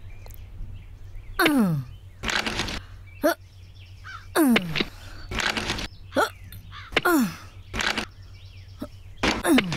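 A hatchet chops into dry wood.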